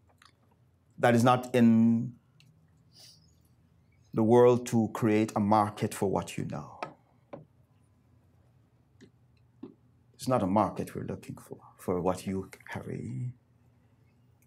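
A middle-aged man speaks calmly through a microphone, with pauses between phrases.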